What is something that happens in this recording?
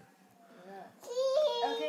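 A toddler squeals loudly and excitedly.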